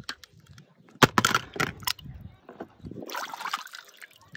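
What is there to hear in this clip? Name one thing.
Water splashes as a toy car is dunked in a tub.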